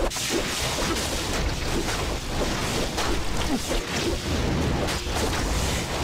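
Spells crackle and blast again and again in a fast fight.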